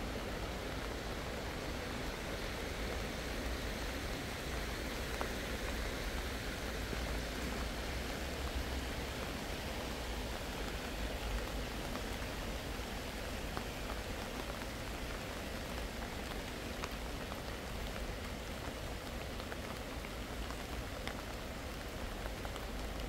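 Steady rain patters on wet pavement and plants.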